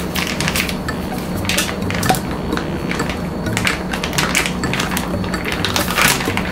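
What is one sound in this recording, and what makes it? A plastic bag crinkles as it is squeezed.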